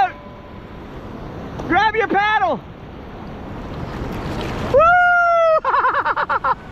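Water splashes and laps against a kayak.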